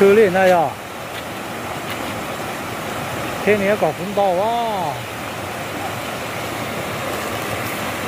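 A shallow stream rushes steadily over rocks outdoors.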